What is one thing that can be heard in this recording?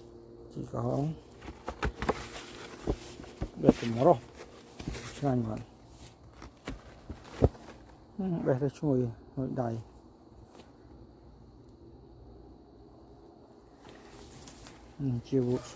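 Leafy plants rustle as someone pushes through them.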